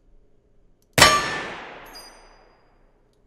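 A pistol fires a single loud shot that echoes and fades.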